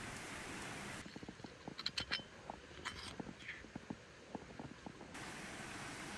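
A spoon scrapes against a cast-iron skillet.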